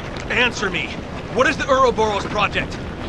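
A man shouts a question angrily, close by.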